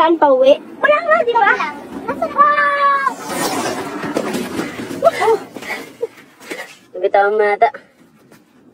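Children talk to each other with animation, close by.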